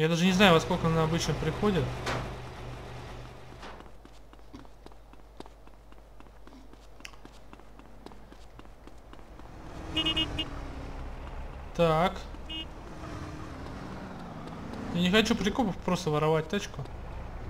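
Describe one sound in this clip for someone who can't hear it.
Footsteps run quickly on pavement.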